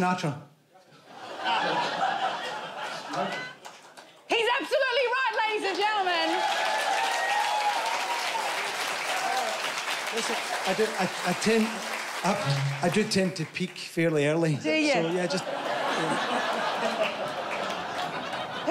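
A studio audience laughs and applauds.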